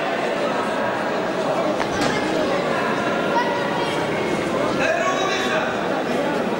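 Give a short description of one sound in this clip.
Two fighters' feet shuffle and thud on a mat.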